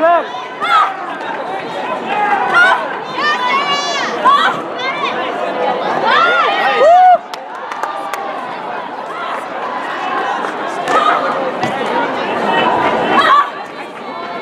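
Young competitors shout sharply as they kick.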